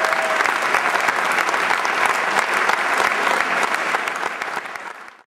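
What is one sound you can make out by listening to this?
An audience claps and cheers loudly in a large hall, fading toward the end.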